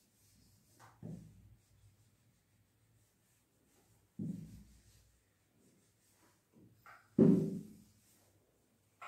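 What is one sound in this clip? A sponge wipes and thumps against a whiteboard.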